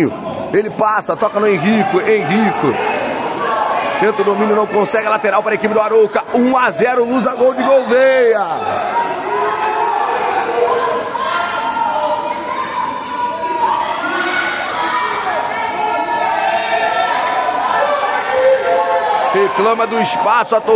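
Spectators and young players shout and cheer loudly in a large echoing hall.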